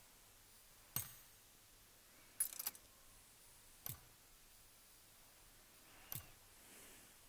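Short menu clicks sound a few times.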